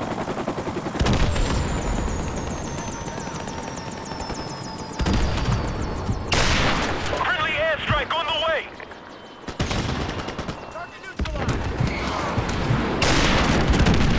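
A rifle fires loud, sharp shots that echo.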